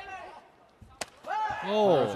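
A kick lands on a body with a sharp smack.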